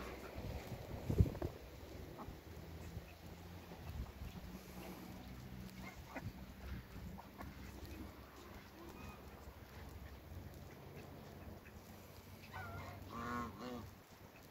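Ducks and geese peck and tear at grass close by.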